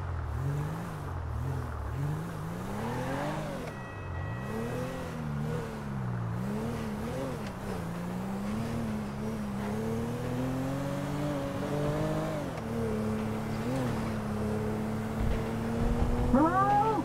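A car engine revs up and down as the car drives along, then hums steadily at speed.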